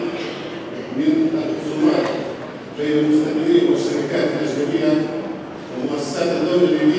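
A man speaks formally into a microphone, heard through loudspeakers in a large echoing hall.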